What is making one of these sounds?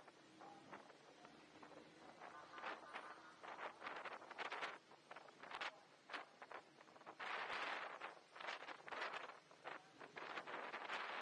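Wind rushes and buffets in gusts past the rider.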